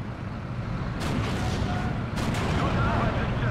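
Tank guns fire with loud booms.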